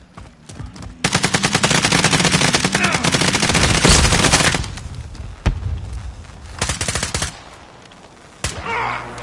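Gunshots crack in rapid bursts nearby.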